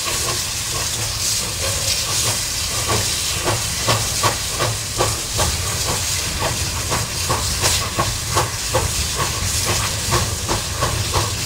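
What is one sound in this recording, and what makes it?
Steel wheels clank rhythmically over rail joints.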